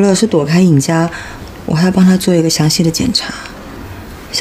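A younger woman answers tensely nearby.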